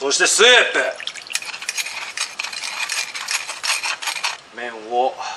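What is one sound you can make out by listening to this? A metal spoon scrapes and clinks against a wire strainer.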